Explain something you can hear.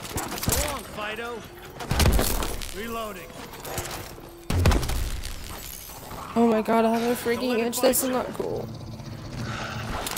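Zombies growl and shriek.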